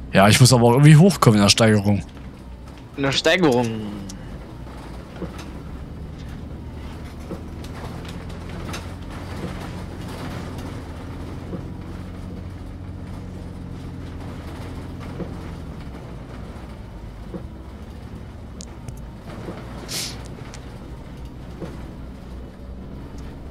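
An articulated natural-gas city bus engine drones.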